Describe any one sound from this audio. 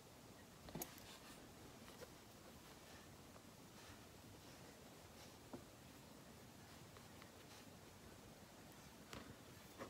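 Thread rasps softly as it is pulled through fabric.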